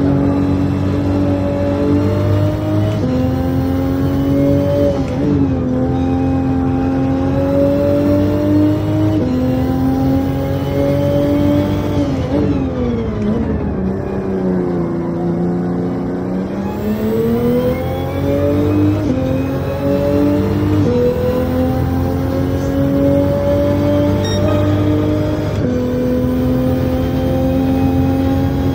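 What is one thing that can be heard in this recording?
A racing car engine roars at high revs, climbing and shifting gears, then drops low while braking and revs up again.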